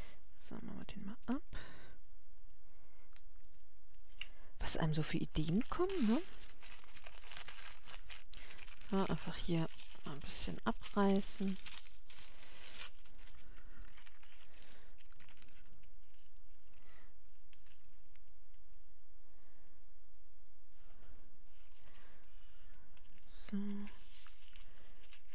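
Paper and thin plastic rustle and crinkle as they are handled up close.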